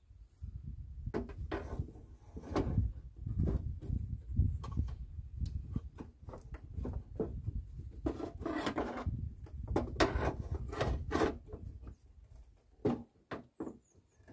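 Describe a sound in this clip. A metal pry bar scrapes and knocks against a car's headlight.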